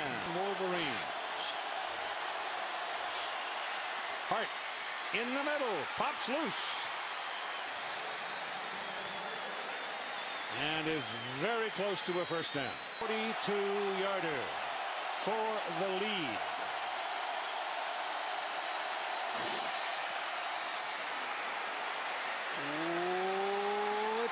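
A large stadium crowd roars and cheers steadily, swelling loudly near the end.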